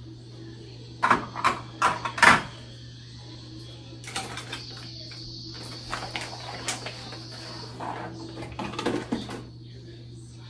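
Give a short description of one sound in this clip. Small plastic items clatter and rattle in a woman's hands.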